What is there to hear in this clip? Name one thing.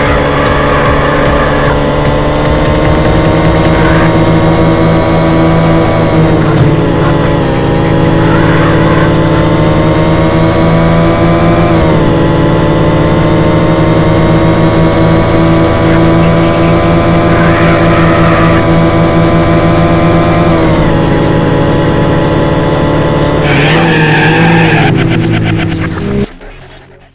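A car engine roars steadily at high revs, rising in pitch and dropping briefly with each gear change.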